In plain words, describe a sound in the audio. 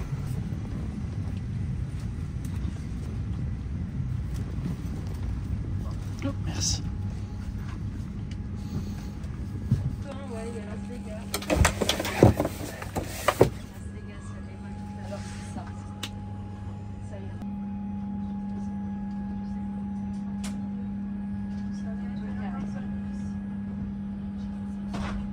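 A steady low hum of cabin ventilation fills an aircraft cabin.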